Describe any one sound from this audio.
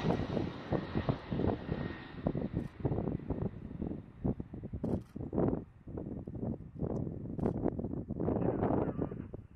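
Propeller planes drone in the distance.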